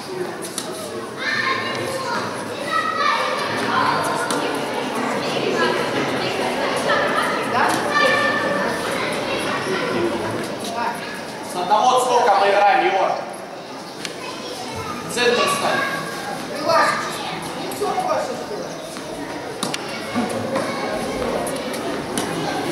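A tennis racket hits a ball with a hollow pop.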